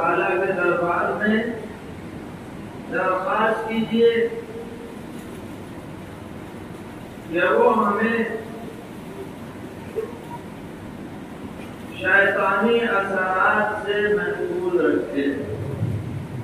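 An elderly man speaks calmly into a microphone in bursts, with pauses between.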